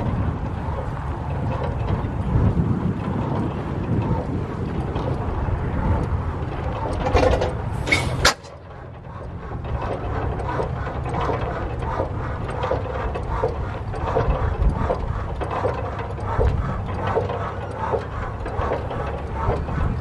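Wind rushes outdoors.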